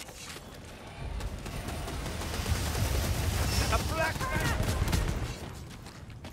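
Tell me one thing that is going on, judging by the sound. A gun fires repeatedly with a loud, roaring blast.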